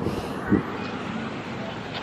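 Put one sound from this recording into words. A car drives past in the distance.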